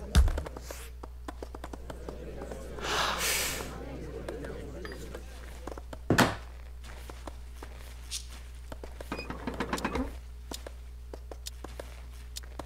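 Workers knock and hammer in a busy settlement with short, scattered clicks.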